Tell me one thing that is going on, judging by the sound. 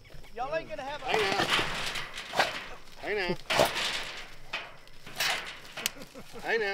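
A metal cage rattles as a stick pokes at it.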